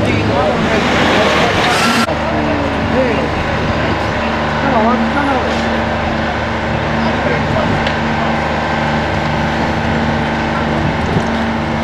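A fire engine's motor idles with a steady hum.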